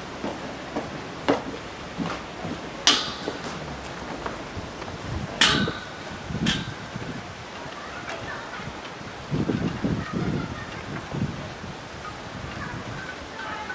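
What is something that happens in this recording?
Sandals tap on a stone path.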